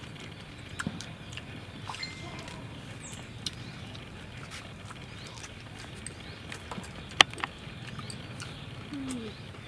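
Two young women chew and crunch crisp leaves close by.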